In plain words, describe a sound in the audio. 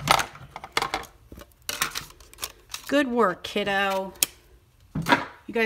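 A hand lays a sheet of card down on a table with a light rustle.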